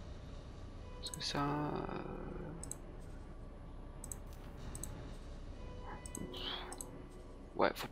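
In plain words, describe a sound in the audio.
Short interface clicks sound as menu options are chosen.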